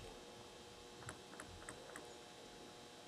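A ping-pong ball bounces lightly on a table.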